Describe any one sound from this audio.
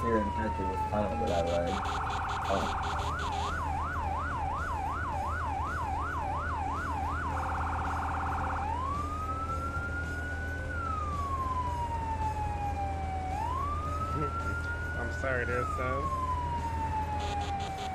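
A siren wails and yelps loudly throughout.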